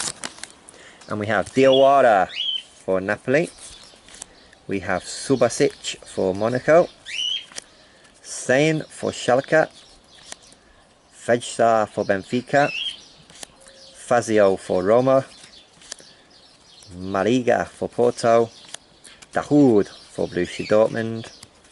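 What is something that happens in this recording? Stiff cards slide against each other as they are flipped through.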